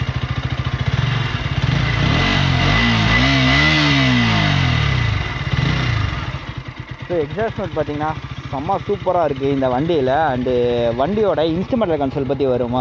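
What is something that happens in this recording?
A motorcycle engine idles with a steady throb.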